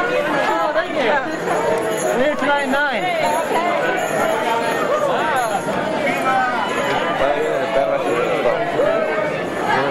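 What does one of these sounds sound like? A crowd of people chatter and cheer loudly in a large echoing hall.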